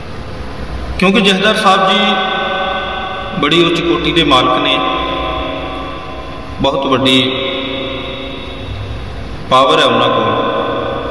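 A man sings in a steady, drawn-out voice close to a microphone.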